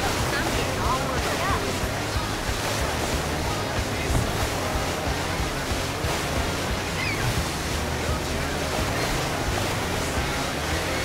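A jet ski engine drones steadily at speed.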